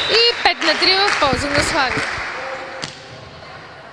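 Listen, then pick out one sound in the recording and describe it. A volleyball is struck hard in an echoing hall.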